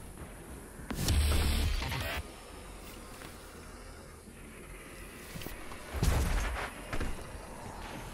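A shotgun fires with a booming blast.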